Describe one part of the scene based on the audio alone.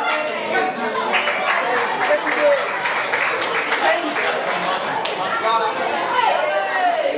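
A crowd of children and adults chatters and shouts loudly in an echoing hall.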